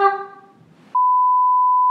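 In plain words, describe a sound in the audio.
A steady high test tone sounds.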